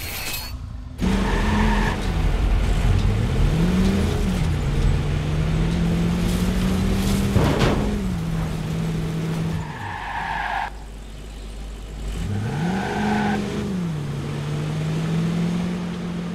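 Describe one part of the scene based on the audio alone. A van engine hums and revs as it drives along.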